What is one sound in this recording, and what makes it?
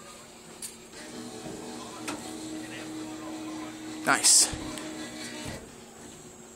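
A claw machine's motor hums and whirs.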